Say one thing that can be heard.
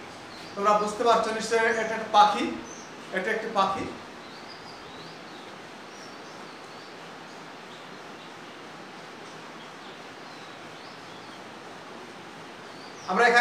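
A young man speaks calmly to a room, close by.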